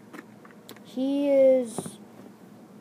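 A young boy makes a short, drawn-out vocal sound close by.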